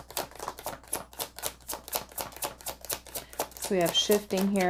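Cards riffle and flap rapidly as a deck is shuffled close by.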